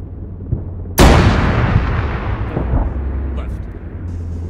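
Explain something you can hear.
A large explosion booms loudly and rumbles away.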